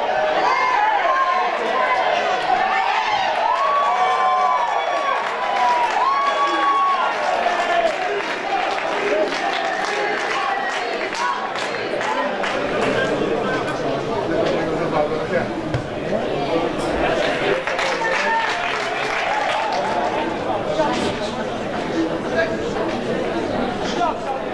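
Men shout and call out across an open sports field.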